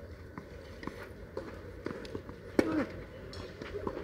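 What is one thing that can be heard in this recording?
A tennis ball bounces softly on a clay court.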